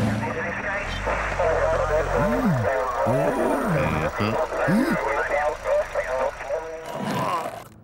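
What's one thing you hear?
A man talks with animation in a gruff voice.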